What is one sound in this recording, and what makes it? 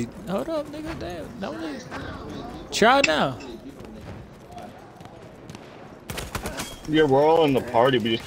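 A machine gun fires in short bursts.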